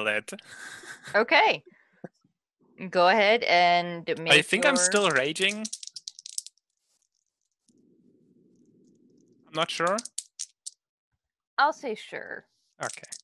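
Several men talk and laugh with animation over an online call.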